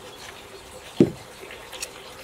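A metal tool clicks against wood.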